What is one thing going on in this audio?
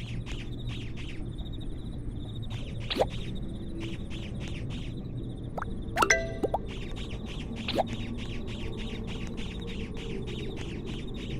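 Sparkly game sound effects chime and pop repeatedly.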